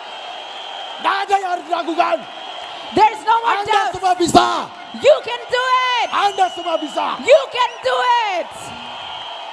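A man sings loudly through a microphone with echo.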